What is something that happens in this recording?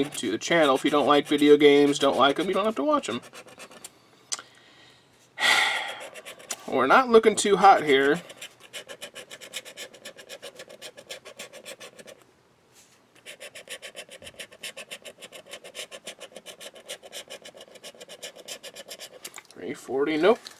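A hard tool scratches rapidly at a card's coating.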